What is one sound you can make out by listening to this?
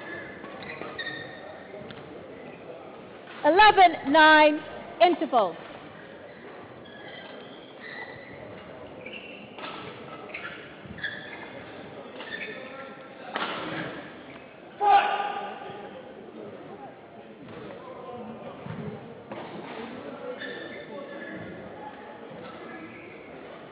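People murmur and talk quietly in a large echoing hall.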